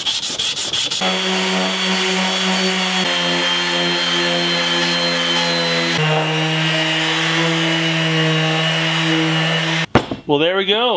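An electric sander whirs steadily against metal.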